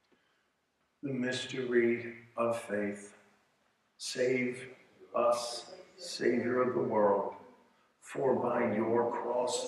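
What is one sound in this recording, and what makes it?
An older man speaks calmly and steadily through a microphone, in a quiet echoing room.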